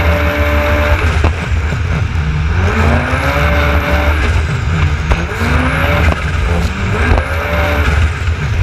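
A jet ski engine roars, its pitch rising and falling as it revs.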